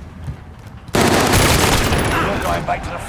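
A shotgun fires a loud blast up close.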